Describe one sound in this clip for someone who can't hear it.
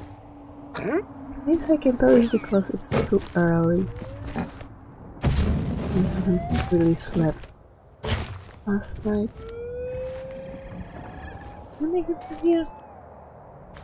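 Footsteps thud on rocky ground.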